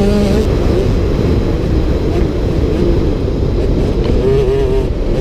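A dirt bike engine roars loudly up close, revving up and down.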